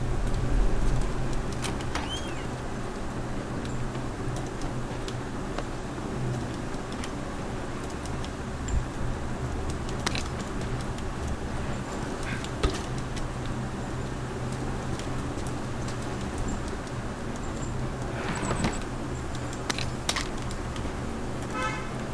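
Footsteps walk slowly over a hard floor.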